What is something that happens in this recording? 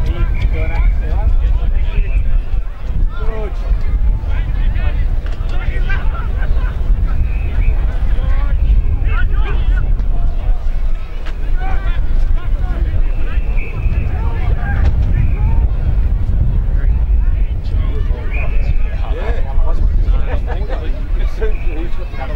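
Young men shout and call out to each other on the field.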